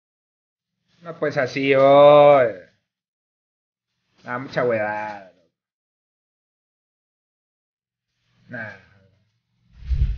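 A young man speaks with animation into a microphone, in short bursts.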